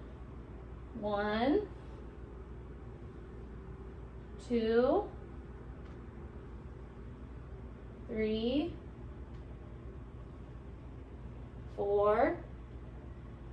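A young woman counts aloud, close by.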